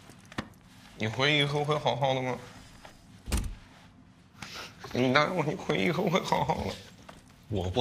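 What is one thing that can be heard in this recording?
A young man speaks softly up close.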